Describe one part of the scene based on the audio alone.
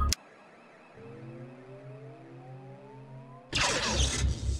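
A machine whines, rising in pitch as it powers up.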